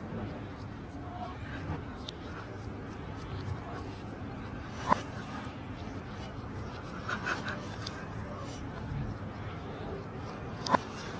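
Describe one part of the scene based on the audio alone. A cat licks and laps food from a tin can.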